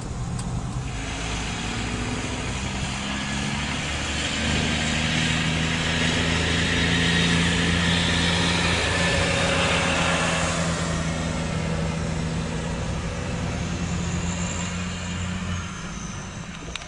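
A diesel truck engine rumbles steadily as it hauls a heavy load.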